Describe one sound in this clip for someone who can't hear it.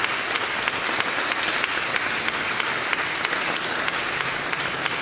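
A band plays a lively folk tune in a large echoing hall.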